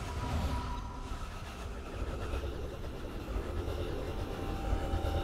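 A magical spell hums and shimmers.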